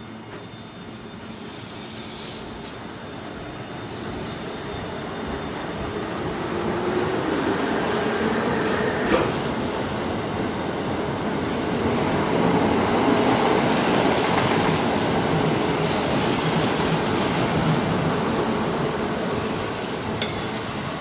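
An electric train rumbles slowly past, its wheels clattering on the rails.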